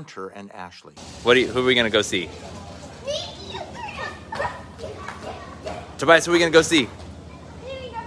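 A young girl talks excitedly nearby.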